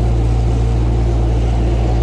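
Water churns and splashes behind a moving boat.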